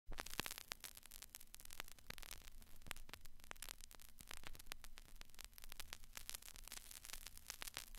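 A vinyl record crackles and pops as it spins under the needle.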